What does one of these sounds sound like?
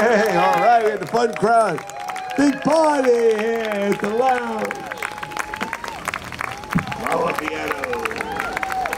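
A crowd applauds and claps outdoors.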